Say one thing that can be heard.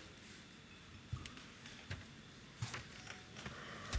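Footsteps sound on the floor as a man walks.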